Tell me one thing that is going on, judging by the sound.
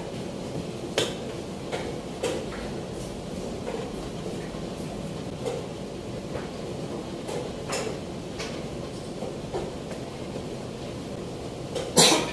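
Chess pieces clack sharply onto a board.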